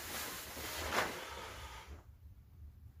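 Clothing rustles and shuffles close by.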